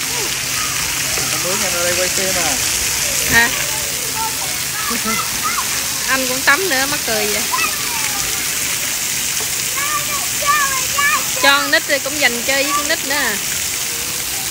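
Young children shout and squeal nearby.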